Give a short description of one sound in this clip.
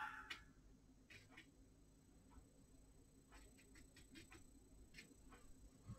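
A brush softly strokes wet paper.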